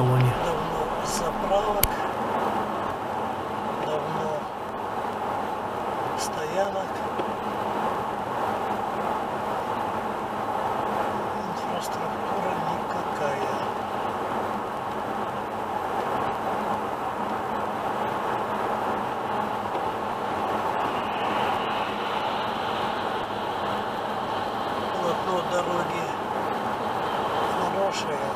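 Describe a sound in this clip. A car's tyres roar steadily on a wet road.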